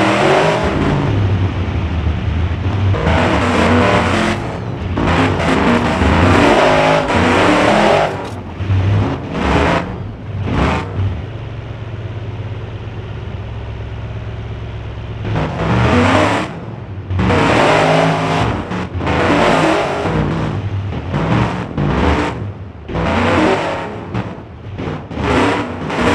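An engine revs hard and roars.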